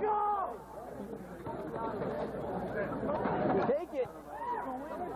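A crowd of young spectators chatters and shouts outdoors.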